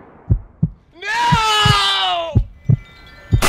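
Another young man talks excitedly.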